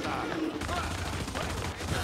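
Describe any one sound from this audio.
A rifle fires a burst of shots.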